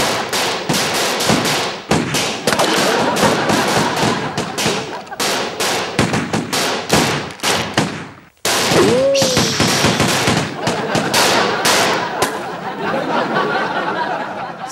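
Guns fire in rapid bursts of loud shots.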